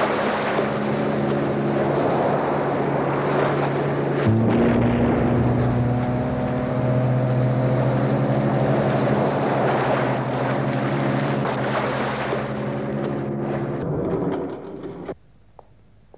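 A motorboat engine roars steadily over splashing waves.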